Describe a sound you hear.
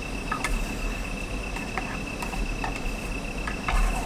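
Chopsticks clink against a metal tin while stirring.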